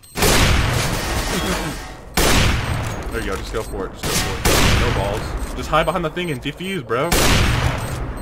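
A sniper rifle fires loud single shots.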